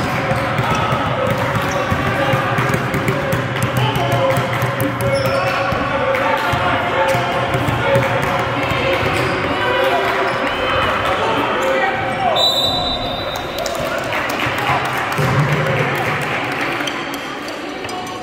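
Young men and women call out and chatter across an echoing gym.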